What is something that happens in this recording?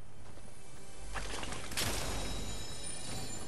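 A treasure chest bursts open with a bright chiming rush.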